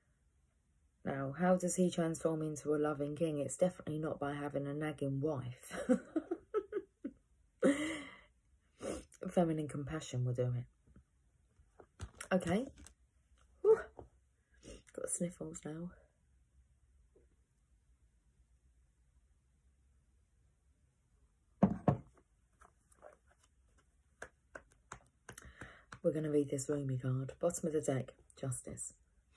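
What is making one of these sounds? A young woman speaks calmly and close up, in short bursts with pauses.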